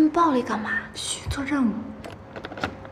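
A second young woman answers briefly, close by.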